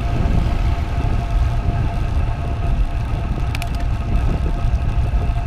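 A bicycle's tyres hum on smooth road.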